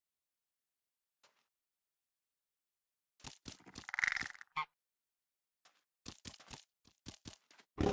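Blocks are placed one after another with short, soft clicks.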